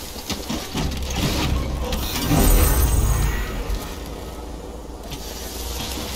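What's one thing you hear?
A small motor vehicle starts up and hums.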